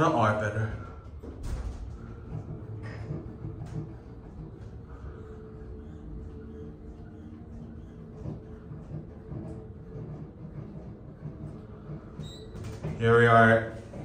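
An elevator hums steadily as it travels.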